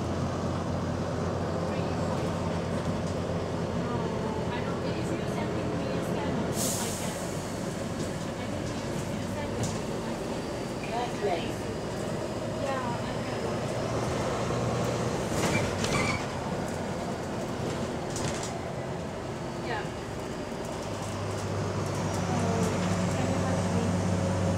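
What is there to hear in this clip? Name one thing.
Loose panels and windows rattle and clatter as a bus moves.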